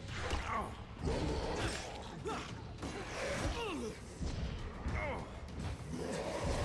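A blade strikes flesh with a heavy thud.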